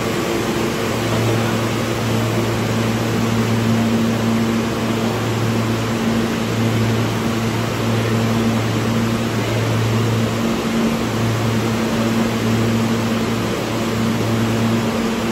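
A subway train idles with a steady low hum.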